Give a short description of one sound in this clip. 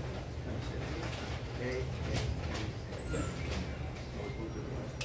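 A live band plays in a room.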